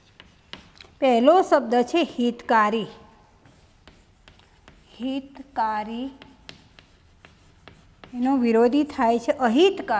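A woman speaks clearly and steadily nearby, in short bursts.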